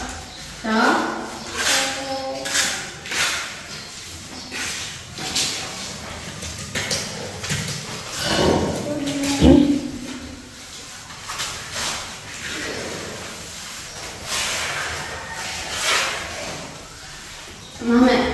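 A trowel scrapes and pats wet mortar.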